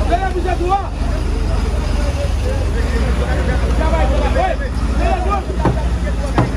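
A large crowd of men and women chatters and calls out outdoors.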